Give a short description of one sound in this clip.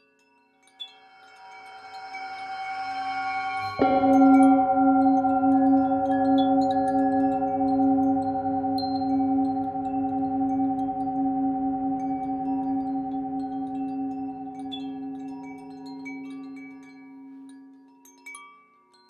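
A metal singing bowl rings with a steady, humming tone as a mallet is rubbed around its rim.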